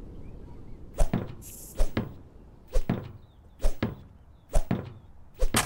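An axe chops into a wooden stump with sharp knocks.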